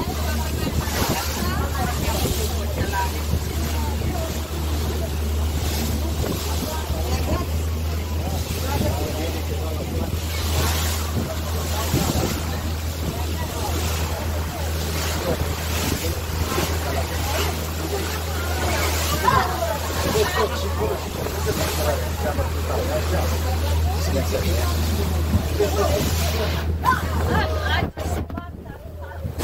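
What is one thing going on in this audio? Waves splash and rush against a boat's hull.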